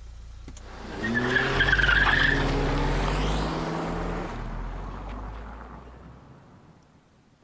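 A car engine roars as a car speeds past and fades away.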